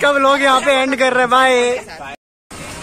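A young man sings loudly close by.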